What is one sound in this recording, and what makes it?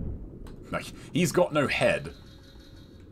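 A monster screeches loudly.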